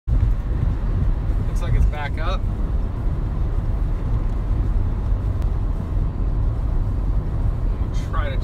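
A car drives steadily along a highway, with a low rumble of road noise inside the cabin.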